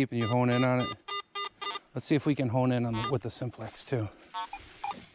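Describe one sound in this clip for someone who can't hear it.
A metal detector beeps and warbles in short bursts.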